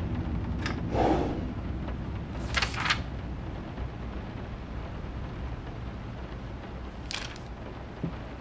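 Paper rustles as a note is handled.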